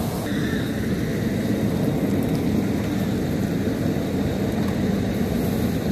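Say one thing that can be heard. Water sprays from a fire hose into a car's engine.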